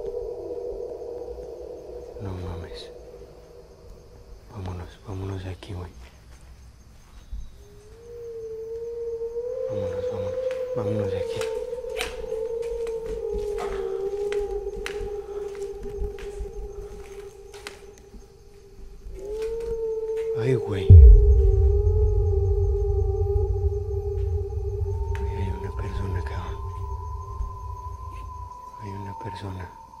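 Footsteps crunch on debris underfoot.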